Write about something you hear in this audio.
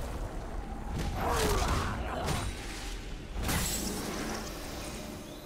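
Magic spell effects whoosh and crackle in bursts.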